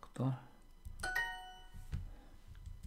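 A bright, cheerful chime rings out once and quickly fades.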